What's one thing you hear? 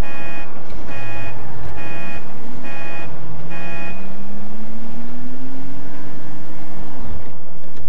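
A car engine hums and revs as the car pulls away.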